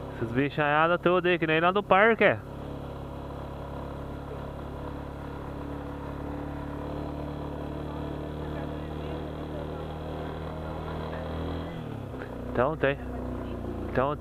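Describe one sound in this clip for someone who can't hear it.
A motorcycle engine hums steadily while riding, dropping in pitch near the end.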